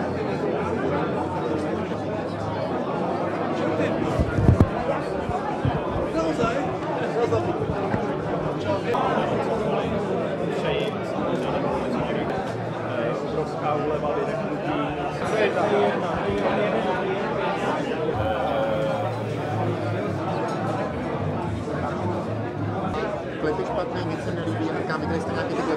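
A crowd of people chatters in a room.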